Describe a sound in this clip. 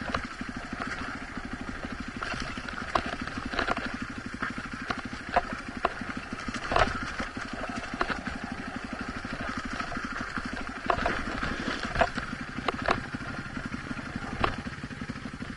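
Tyres crunch and knock over rocks and loose dirt.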